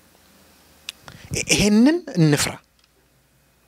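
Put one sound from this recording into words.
A man speaks with feeling into a microphone.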